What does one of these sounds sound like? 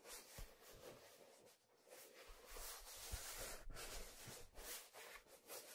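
Hands rub and squeak on a leather steering wheel as it is turned.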